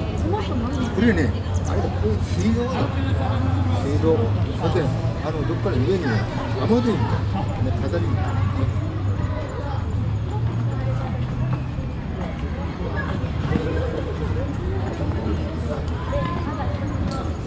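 A crowd of children chatter and call out outdoors.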